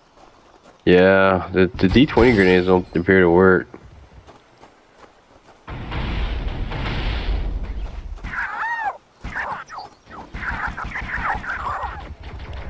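A sci-fi gun fires rapid bursts of whistling, tinkling shots.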